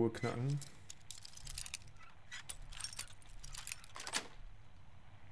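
A metal pick scrapes and clicks inside a lock.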